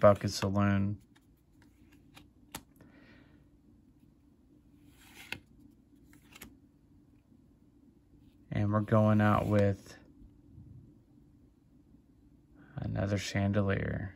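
Playing cards slide and flick against each other in a hand.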